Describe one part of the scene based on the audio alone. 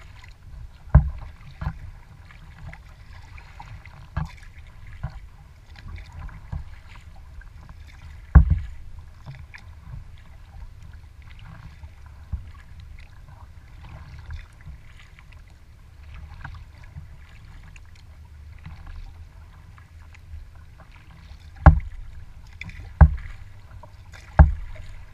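Water knocks sharply against the hull now and then.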